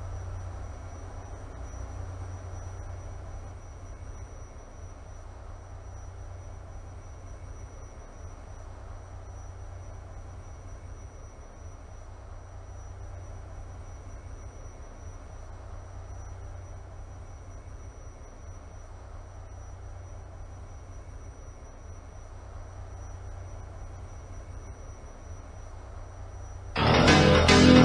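A subway train rumbles low at a station platform.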